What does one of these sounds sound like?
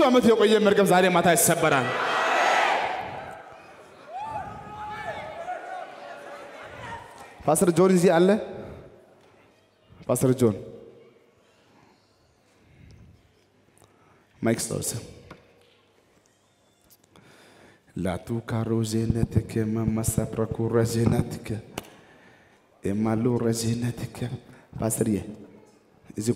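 A man preaches with animation through a headset microphone over loudspeakers in a large hall, with long pauses.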